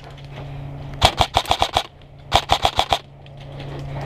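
A paintball gun fires rapid bursts of shots close by.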